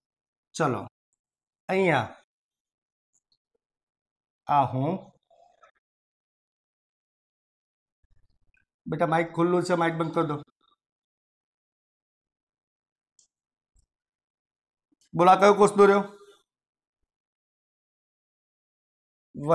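A man speaks in short, calm phrases, close to a microphone, with long pauses between them.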